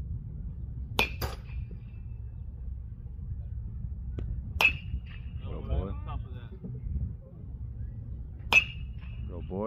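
A metal bat pings sharply as it hits a baseball.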